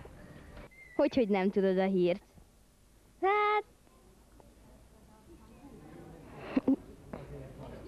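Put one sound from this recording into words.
A young boy speaks softly into a microphone.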